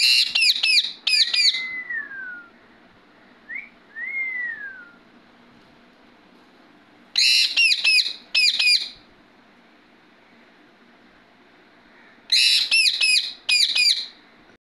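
A parrot screeches in loud, sharp bursts close by.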